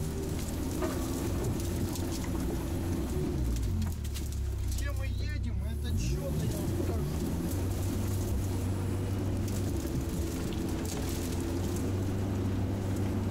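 A heavy vehicle's engine rumbles and labours steadily.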